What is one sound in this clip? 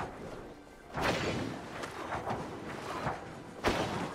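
A magical blast bursts with a crackling whoosh.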